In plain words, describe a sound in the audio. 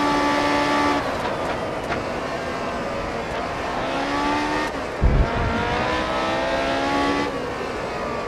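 A racing car engine drops in pitch as gears shift down, then revs back up.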